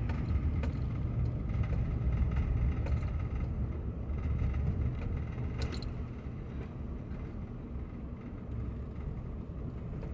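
A car rumbles along the road at low speed.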